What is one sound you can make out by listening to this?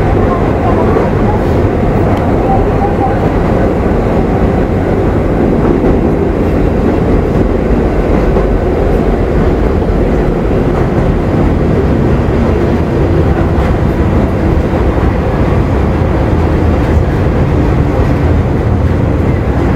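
A subway train rumbles loudly along the tracks through a tunnel.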